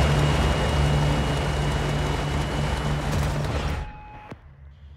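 A propeller plane's engines roar loudly.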